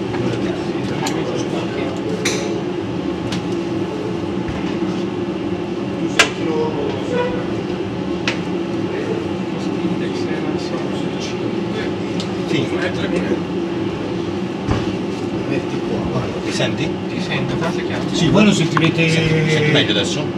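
Aircraft engines and cockpit air hum steadily.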